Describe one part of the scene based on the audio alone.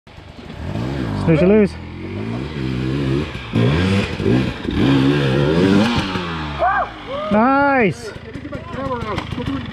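Dirt bike engines rev loudly, rising and falling in pitch.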